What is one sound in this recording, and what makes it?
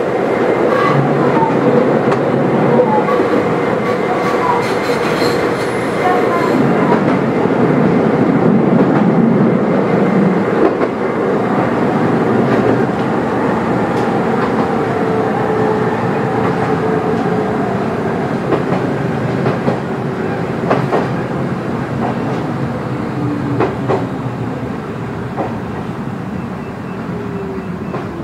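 A train rumbles steadily along the tracks, heard from inside the cab.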